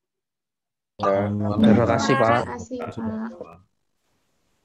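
A young woman speaks calmly close to the microphone.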